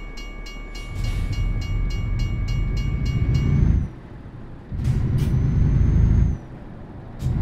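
A truck engine revs up and pulls away.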